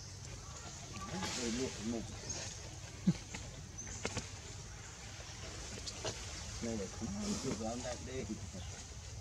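Young monkeys squeal softly close by.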